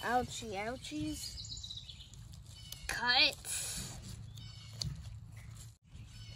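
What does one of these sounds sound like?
Garden scissors snip through a plant stem.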